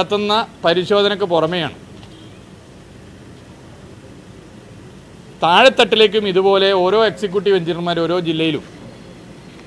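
A middle-aged man speaks calmly into microphones close by, pausing between phrases.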